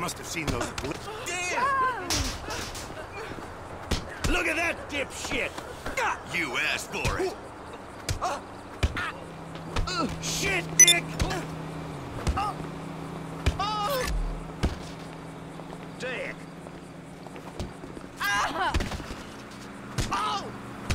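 Fists thud in a scuffle.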